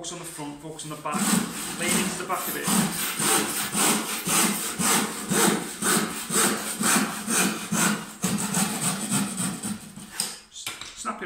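A hand saw cuts through wood with quick, steady strokes.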